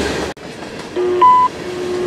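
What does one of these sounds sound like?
A railway crossing signal rings.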